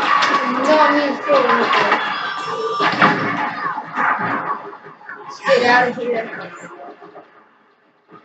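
Video game sounds play from a television speaker.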